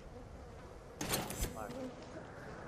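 A small metal part is picked up with a short clink.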